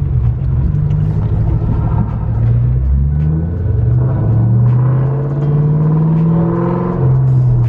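A supercharged V8 car accelerates hard through the gears, heard from inside the car.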